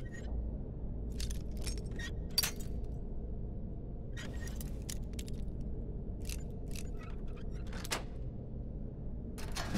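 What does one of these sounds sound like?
A lockpick scrapes and clicks inside a metal lock.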